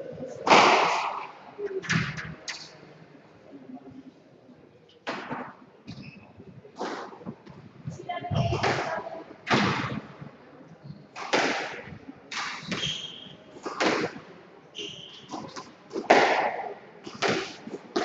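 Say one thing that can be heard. A squash ball smacks sharply off the walls of an echoing court.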